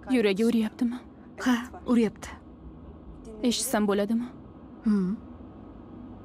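A middle-aged woman speaks calmly and softly nearby.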